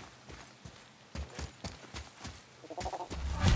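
Footsteps crunch on sand and gravel.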